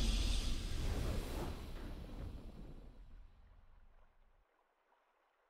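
Triumphant game music swells and fades away.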